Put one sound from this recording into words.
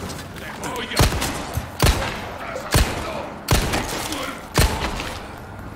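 A gun fires in repeated sharp shots.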